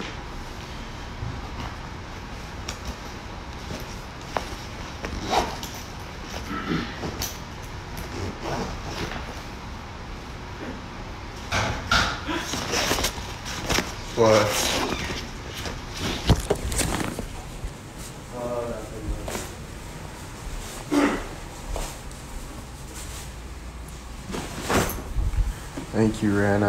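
A young man talks casually, close to a phone microphone.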